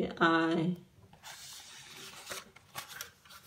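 A page of a book rustles as it is turned.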